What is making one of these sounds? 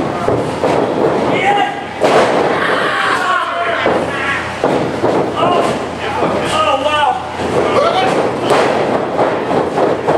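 A wrestler's body thuds onto a wrestling ring mat.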